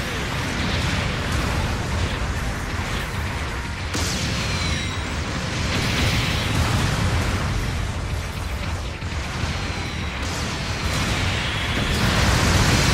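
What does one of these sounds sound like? Jet thrusters roar steadily as a giant robot moves.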